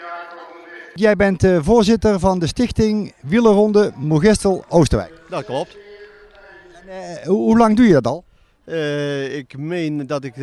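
An older man speaks calmly and close into a microphone.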